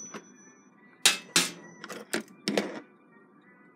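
Small metal parts clink and rattle.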